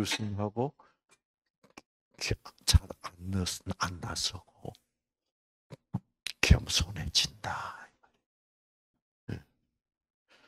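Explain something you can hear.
An elderly man speaks into a microphone with animation, pausing between phrases.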